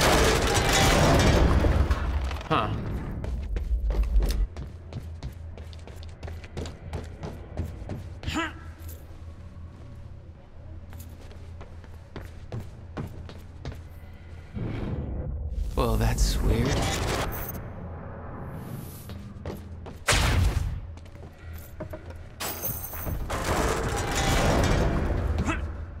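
Footsteps thud quickly across wooden planks and metal.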